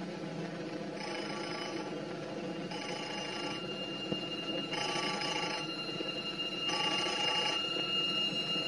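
A telephone rings in short repeated bursts.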